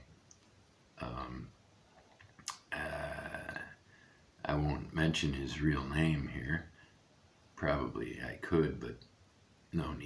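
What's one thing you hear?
An elderly man speaks calmly and close up, in short bursts.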